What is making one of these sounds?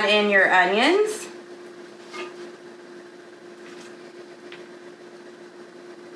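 Onion slices drop softly onto vegetables in a pot.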